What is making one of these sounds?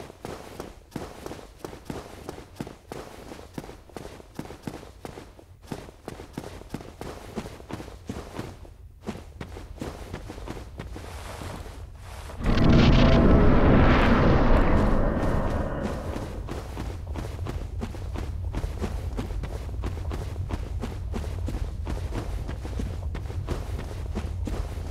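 Footsteps clank steadily on stone.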